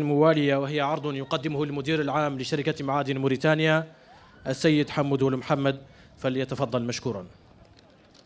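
A man speaks forcefully into microphones, amplified over loudspeakers outdoors.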